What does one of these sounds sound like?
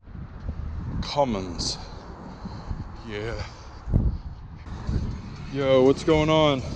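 A young man speaks close up, casually.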